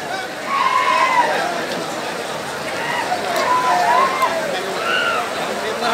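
A crowd cheers in a noisy roar.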